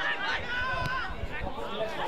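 A football is punted with a dull thud.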